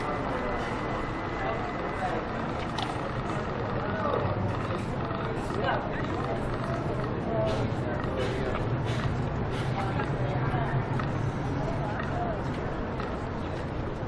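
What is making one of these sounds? Several people chatter nearby on the pavement.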